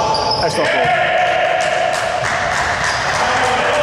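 A man shouts from the sideline in a large echoing hall.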